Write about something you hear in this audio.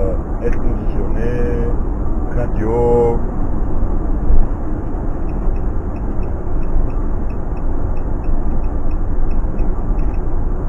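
A vehicle engine drones steadily, heard from inside the cab.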